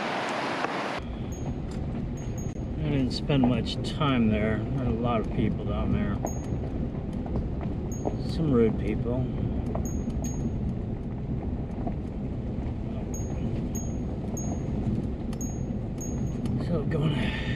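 Tyres crunch over a gravel road.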